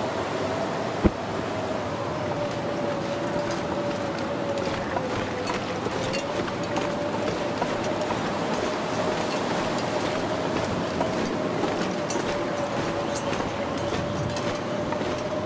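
A strong wind howls and whistles steadily in a blizzard.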